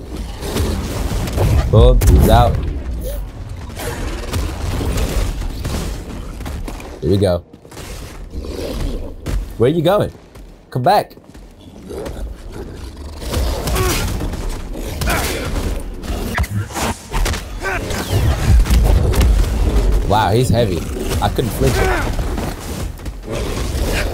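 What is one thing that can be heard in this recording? A laser sword hums and swooshes through the air.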